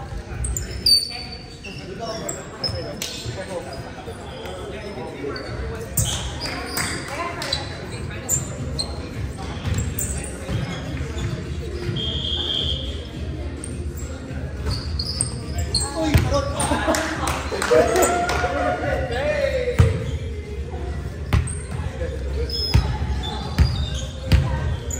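Young men and women talk and call out across a large echoing hall.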